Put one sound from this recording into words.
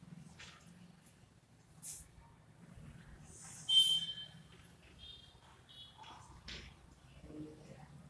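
Chalk scrapes and squeaks on a board.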